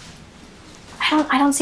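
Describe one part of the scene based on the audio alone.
A young woman speaks up nearby.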